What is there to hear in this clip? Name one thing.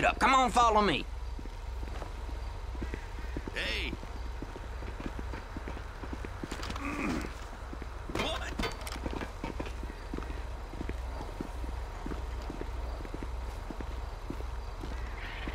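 Footsteps crunch steadily on a gritty concrete floor.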